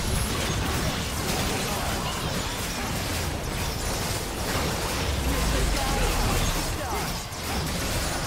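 Characters strike a large monster with rapid hits.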